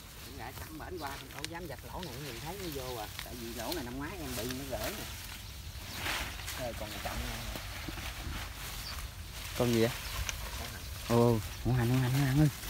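Leafy branches rustle as a person pushes through dense plants.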